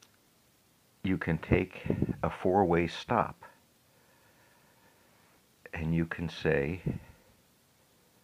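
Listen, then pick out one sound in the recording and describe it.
An older man speaks calmly and close up, heard through a microphone.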